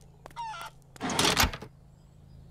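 A metal object clunks down onto a wooden bench.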